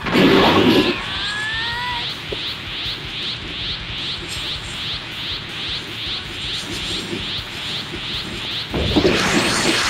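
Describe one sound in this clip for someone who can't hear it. An energy aura crackles and pulses in a fast, steady rhythm.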